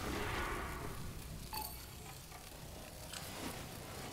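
A short electronic chime sounds as an item finishes crafting.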